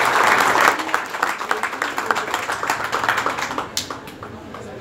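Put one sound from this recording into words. A crowd applauds loudly, then the clapping dies away.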